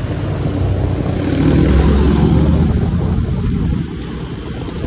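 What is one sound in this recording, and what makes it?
A truck rumbles past close by.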